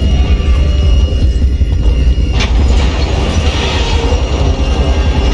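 A man talks into a microphone.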